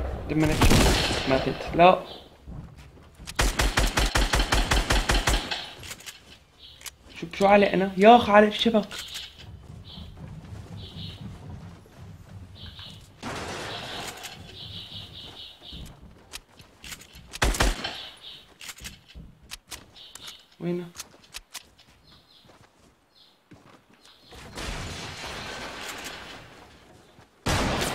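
Wooden building pieces snap into place with quick knocks.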